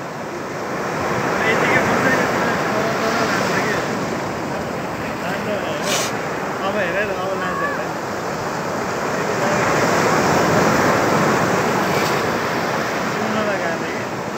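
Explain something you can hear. Waves break and wash up onto a beach close by, in surging rushes.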